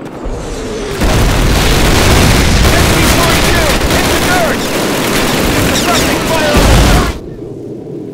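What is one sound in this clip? Heavy machine gun fire roars loudly and close by.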